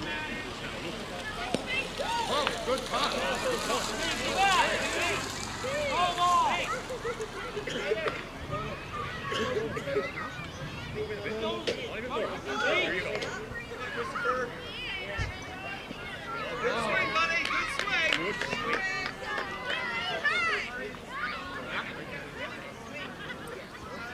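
Many children chatter and shout excitedly outdoors.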